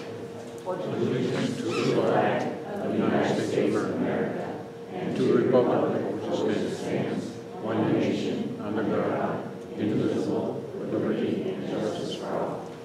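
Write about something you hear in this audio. A group of people recite together in unison.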